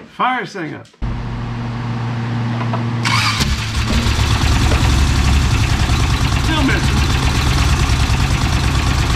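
A car engine idles roughly and unevenly, close by.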